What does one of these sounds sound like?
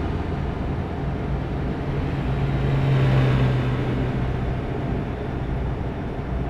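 A truck engine hums steadily while driving.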